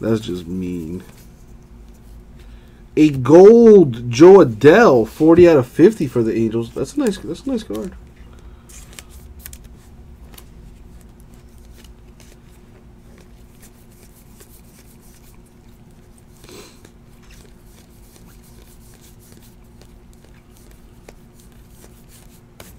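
Stiff cards shuffle and flick softly between hands.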